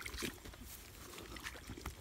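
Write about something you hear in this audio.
A foot sloshes in shallow muddy water.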